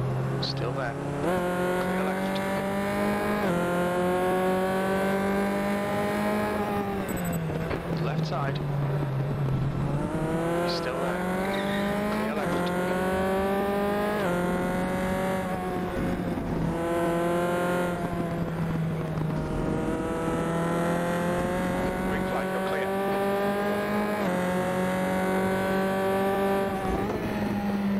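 A race car engine roars loudly, rising in pitch as it speeds up and dropping sharply at each gear change.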